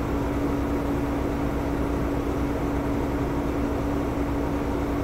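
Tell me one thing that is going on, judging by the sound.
A truck engine rumbles and hums steadily while driving.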